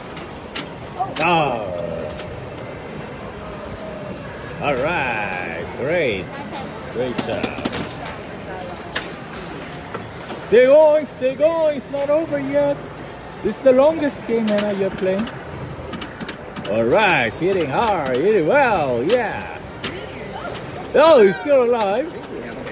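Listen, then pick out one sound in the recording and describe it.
A pinball machine plays bright electronic jingles and sound effects.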